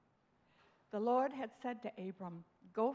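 An elderly woman speaks calmly through a microphone.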